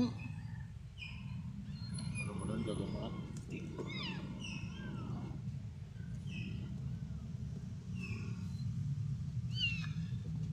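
Small kittens mew with thin, high cries.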